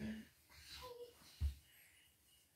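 A hand slaps someone's back.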